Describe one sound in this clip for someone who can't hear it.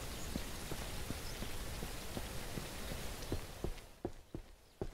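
Rain hisses steadily outdoors, then cuts off.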